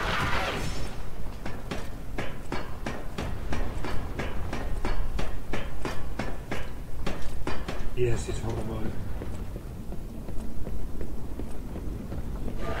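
Footsteps thud quickly on wooden planks.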